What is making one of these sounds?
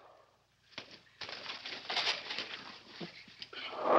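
A wicker chair clatters and crashes over.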